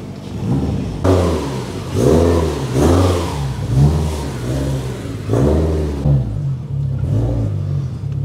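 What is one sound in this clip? Another car engine revs in short, throaty bursts as it drives off.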